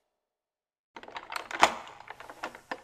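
A padlock clicks and rattles open.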